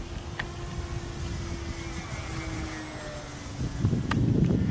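A small model plane's engine drones overhead, its pitch slowly falling.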